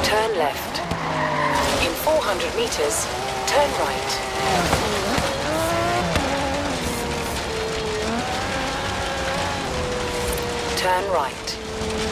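Tyres skid and crunch over dirt.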